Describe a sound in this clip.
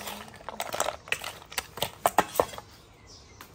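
A metal ladle scrapes and clinks against a metal bowl.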